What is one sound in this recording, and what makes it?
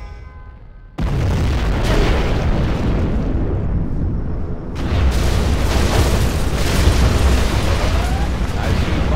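A huge explosion booms with a deep, rumbling roar.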